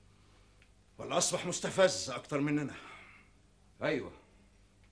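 A man speaks firmly and with emphasis, close by.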